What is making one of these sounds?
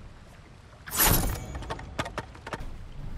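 A sword slices through bamboo stalks with sharp cracks.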